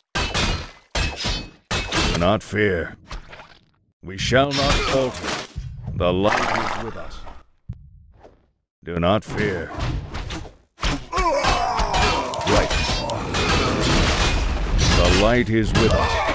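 Weapons clash and strike in a fight.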